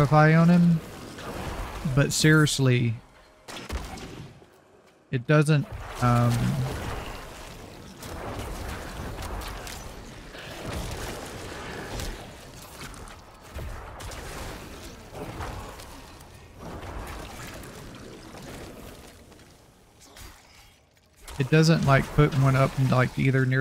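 Blows and spell blasts crash and thud in a fierce fight.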